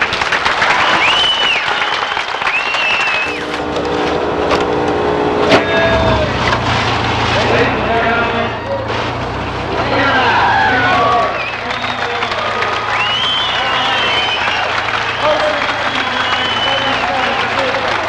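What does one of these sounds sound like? Spectators whistle shrilly.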